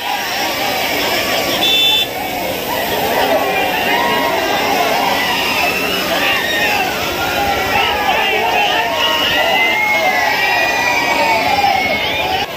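A young man speaks into a microphone over a loudspeaker, shouting with animation.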